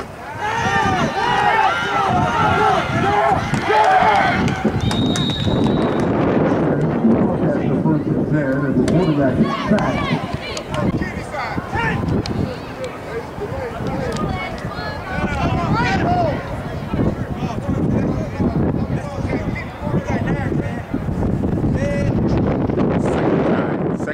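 Spectators nearby shout and cheer loudly.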